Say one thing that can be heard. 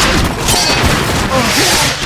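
A fireball bursts with a roar.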